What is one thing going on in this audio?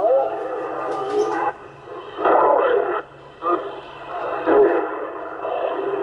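A CB radio receiver crackles and shifts as it is tuned across channels.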